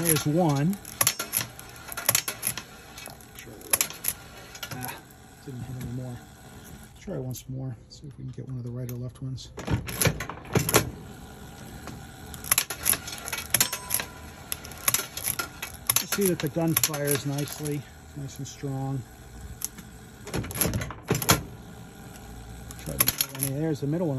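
A spring-loaded plunger snaps back with sharp metallic clacks.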